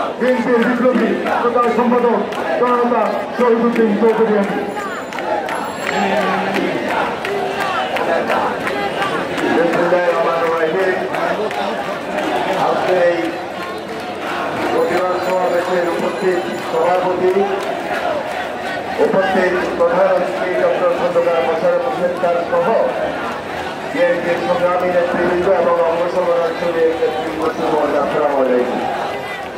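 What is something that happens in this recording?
A crowd murmurs and shouts in the background.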